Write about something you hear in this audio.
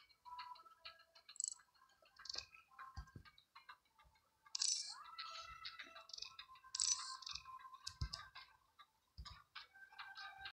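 Short electronic chimes and bleeps from a game play on and off.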